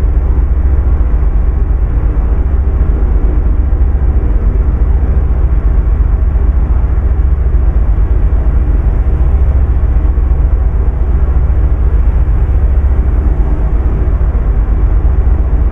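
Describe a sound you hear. A truck's diesel engine drones steadily from inside the cab.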